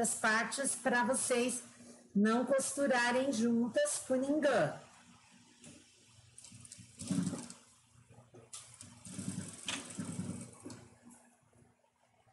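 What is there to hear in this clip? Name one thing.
A sewing machine runs, stitching with a rapid mechanical whirr.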